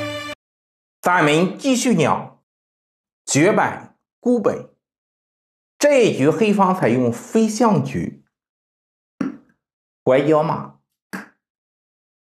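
A man speaks calmly and clearly close to a microphone, in short phrases with pauses.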